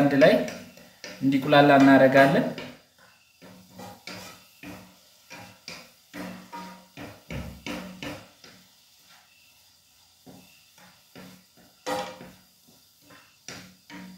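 A wooden spoon stirs and scrapes food in a frying pan.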